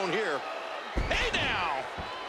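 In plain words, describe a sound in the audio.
A body slams hard onto a wrestling mat with a heavy thud.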